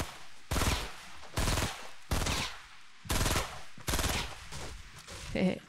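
Gunshots fire in heavy bursts.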